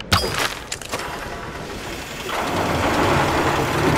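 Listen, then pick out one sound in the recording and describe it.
A bowstring creaks as it is drawn tight.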